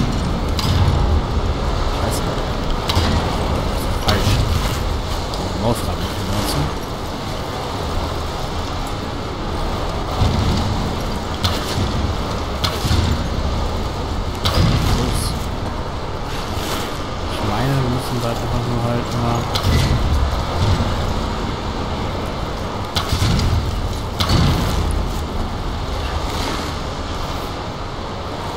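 A low rumble of wind fills a large echoing space.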